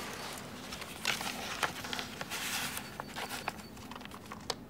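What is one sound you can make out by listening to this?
Paper rustles as an envelope is opened.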